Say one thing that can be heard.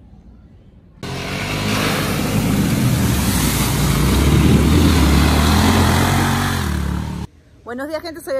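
An off-road vehicle's engine roars and revs.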